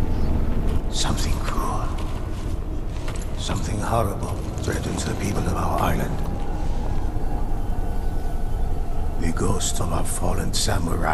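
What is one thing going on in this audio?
An older man speaks slowly and gravely.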